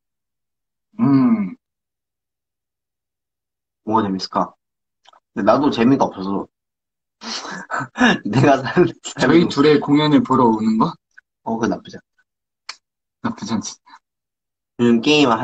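A young man talks casually and close to a microphone, in short bursts with pauses.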